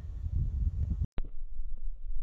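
A golf club hits a ball off grass with a short thud.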